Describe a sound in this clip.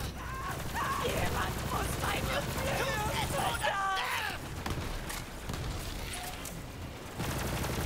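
Rapid gunfire bursts out in quick shots.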